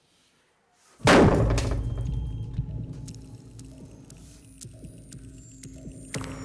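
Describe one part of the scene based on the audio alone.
A sudden loud bang bursts out and rumbles away.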